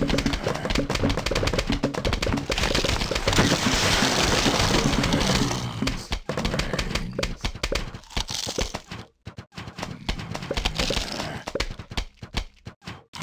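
Cartoon plants quickly pop out peas with soft, rapid thuds.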